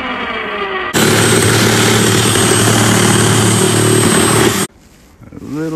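A reciprocating saw buzzes loudly as it cuts.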